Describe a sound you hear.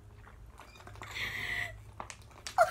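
A man gulps water from a plastic bottle.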